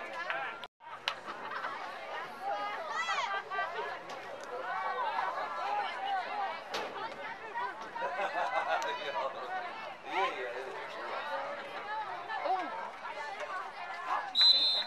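A crowd of children and adults chatter and shout outdoors.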